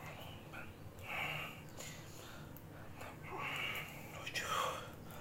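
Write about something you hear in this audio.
A man blows out sharp, rhythmic breaths close by.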